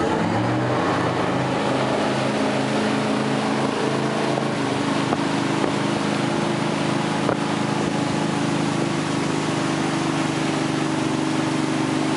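A wakeboard skims and splashes across choppy water.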